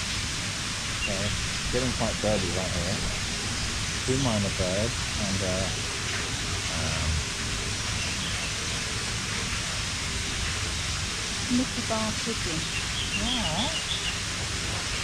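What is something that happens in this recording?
A young child talks nearby.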